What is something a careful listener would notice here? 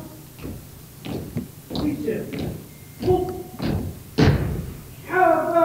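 Boots stamp and rifles knock as an honour guard marches.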